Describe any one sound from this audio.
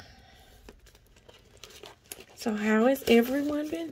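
Paper money crinkles as it is handled.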